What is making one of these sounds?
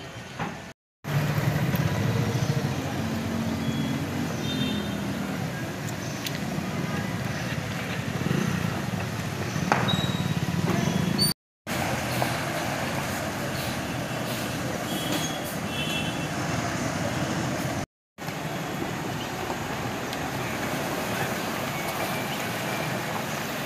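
A car drives slowly through deep floodwater, splashing.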